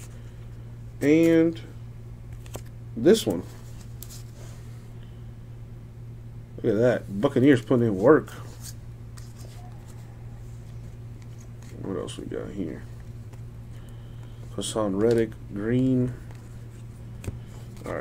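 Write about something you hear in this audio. Stiff cards rustle and slide against each other in hands.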